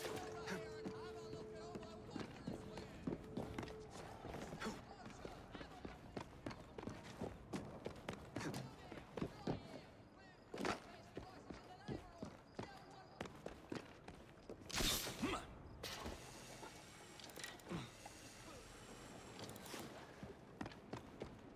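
Footsteps thud and scrape across a rooftop.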